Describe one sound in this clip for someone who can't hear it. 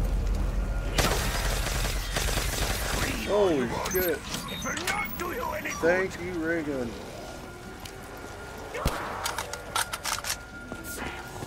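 A ray gun fires in rapid blasts.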